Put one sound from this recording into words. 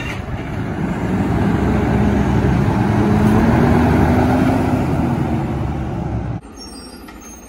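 A garbage truck drives past and revs its engine.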